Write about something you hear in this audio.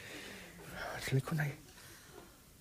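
A middle-aged man laughs heartily close by.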